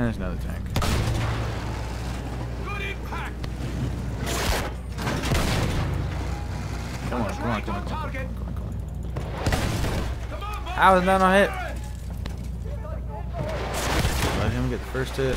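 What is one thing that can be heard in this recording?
Shells explode with heavy booms.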